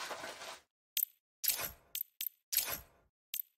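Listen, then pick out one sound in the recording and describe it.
Short menu clicks sound in quick succession.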